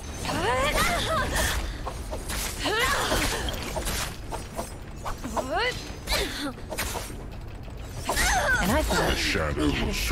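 Swords clash and slash in quick strikes.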